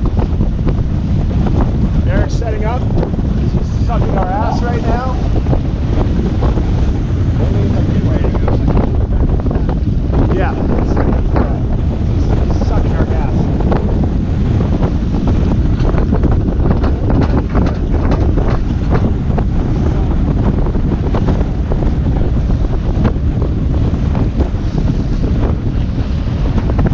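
Strong wind roars steadily across a microphone outdoors.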